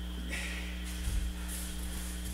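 A body thuds onto a padded mat.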